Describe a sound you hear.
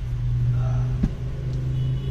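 A laptop is flipped over and set down with a soft thud.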